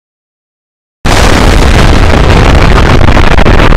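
A huge explosion roars loudly.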